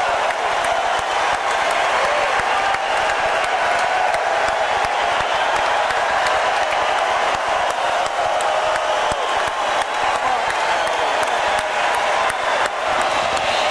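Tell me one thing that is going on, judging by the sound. Live music plays loudly through a large echoing arena sound system.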